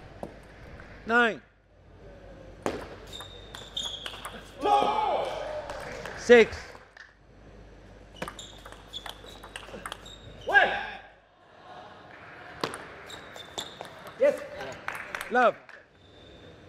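A young man shouts loudly after a point.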